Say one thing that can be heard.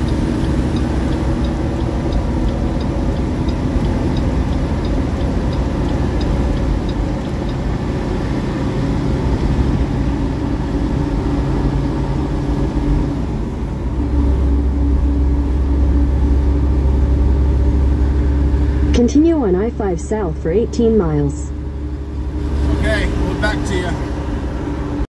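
A car engine hums steadily from inside the cabin.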